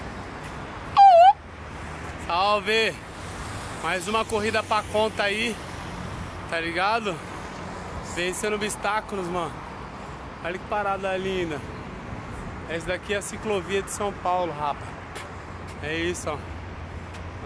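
A man talks with animation close to the microphone outdoors.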